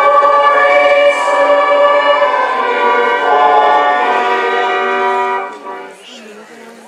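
A crowd sings together outdoors.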